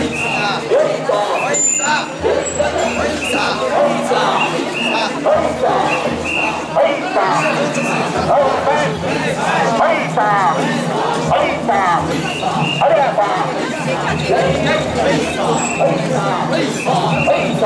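A crowd of men chant loudly and rhythmically outdoors.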